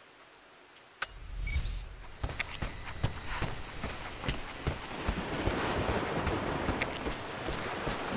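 Footsteps tread slowly across a wooden floor.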